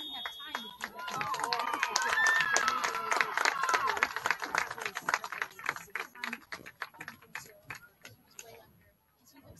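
Spectators clap their hands.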